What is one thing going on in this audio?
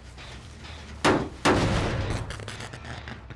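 A metal generator is struck with loud clanging blows.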